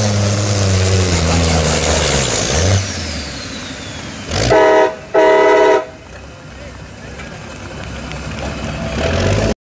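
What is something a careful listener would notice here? A truck's diesel engine roars loudly under heavy strain, then drops and revs up again.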